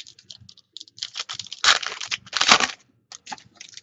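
A foil wrapper crinkles and tears as hands open a card pack.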